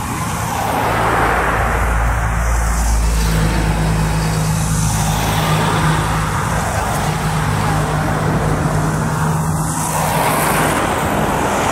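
A bus engine hums close by.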